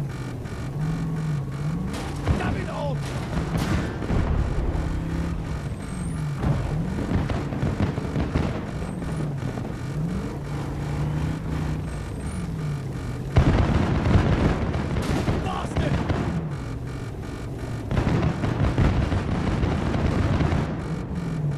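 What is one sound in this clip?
A vehicle engine roars steadily.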